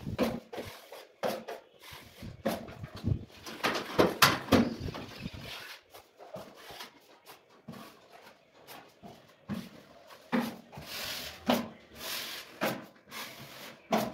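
A metal trowel scrapes plaster across a wall.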